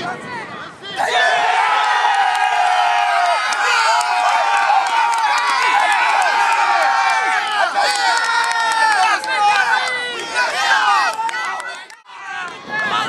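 A crowd cheers and shouts outdoors.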